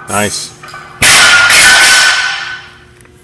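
A barbell with heavy plates crashes down onto a floor and bounces.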